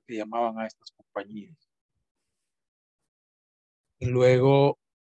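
A middle-aged man talks calmly through an online call microphone, with pauses.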